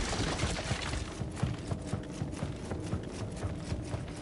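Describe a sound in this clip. Footsteps run across wooden floorboards.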